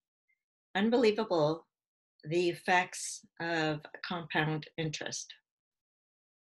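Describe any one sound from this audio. A woman speaks calmly and clearly into a close microphone.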